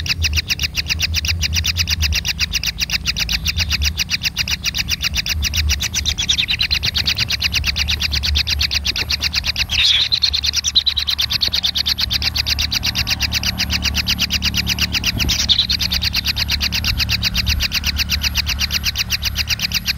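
Kingfisher nestlings give a rapid, steady churring begging call.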